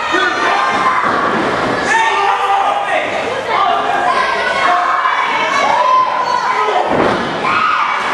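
Bodies slam onto a wrestling ring's canvas with heavy thuds.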